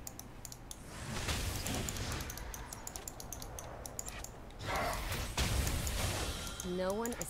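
Game sound effects whoosh and zap.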